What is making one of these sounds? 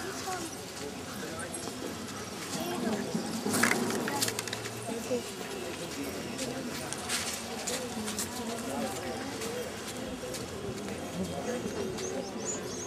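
A crowd of men and women chatters in an open outdoor space.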